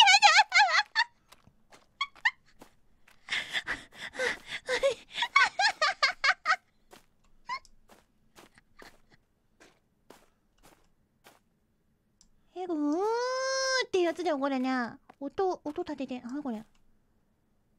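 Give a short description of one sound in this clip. A young woman talks and squeals with animation into a microphone close by.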